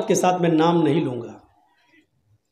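A man speaks loudly and with animation into a microphone over a loudspeaker.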